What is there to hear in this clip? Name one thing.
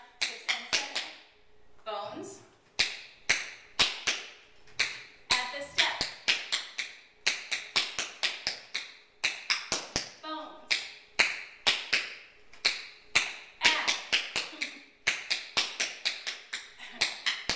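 Tap shoes click sharply and quickly on a hard wooden floor.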